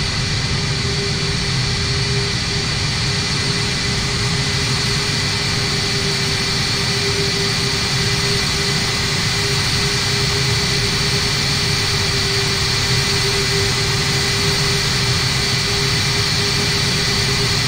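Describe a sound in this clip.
A jet engine whines and hums steadily at idle.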